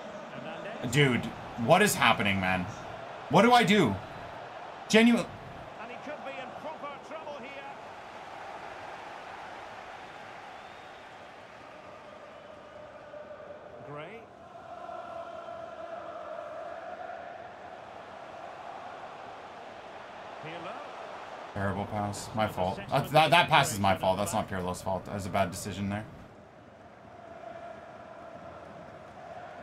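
A stadium crowd murmurs steadily from a football video game.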